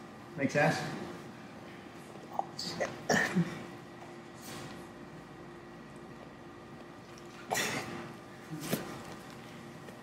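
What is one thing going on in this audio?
A man grunts and breathes hard with effort.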